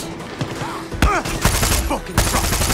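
A rifle fires loud gunshots.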